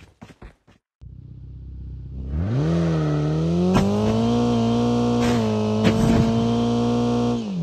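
A car engine starts and hums steadily.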